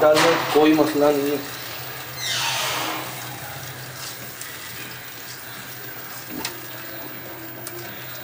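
A spatula stirs a thick stew in a pot.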